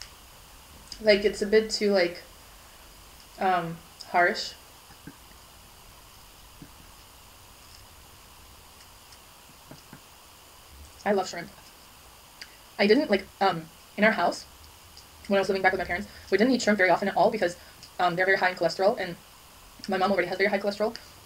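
A young woman talks calmly close to a microphone, pausing between phrases.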